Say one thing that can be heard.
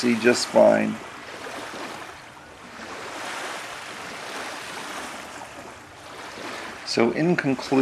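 Small waves lap gently at a shore.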